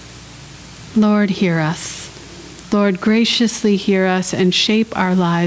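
A woman speaks calmly and clearly into a nearby microphone.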